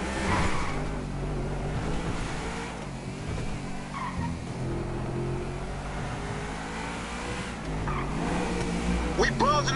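A sports car engine hums steadily, rising and falling as it drives.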